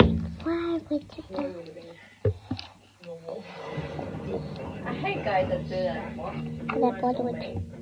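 A young girl talks close to a phone microphone.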